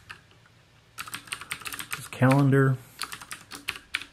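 Computer keys click quickly.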